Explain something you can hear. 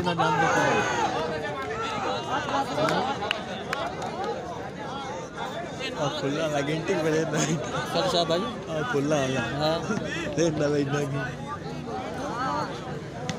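A large outdoor crowd of men shouts and cheers.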